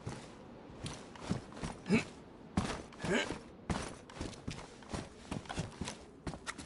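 Footsteps crunch over a hard gritty floor.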